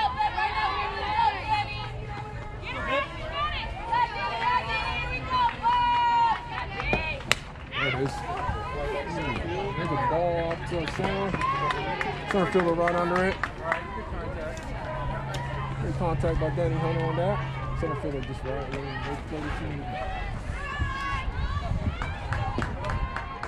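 Women and girls nearby cheer and shout with excitement.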